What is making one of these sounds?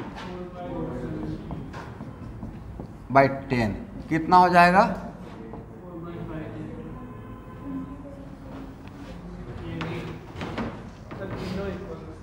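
A man speaks calmly and steadily, like a teacher explaining.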